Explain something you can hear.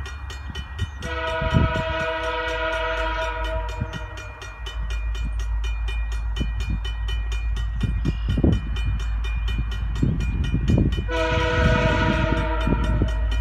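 A train horn blares loudly, twice.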